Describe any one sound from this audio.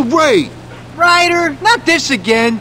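A man answers in a frightened, exasperated voice.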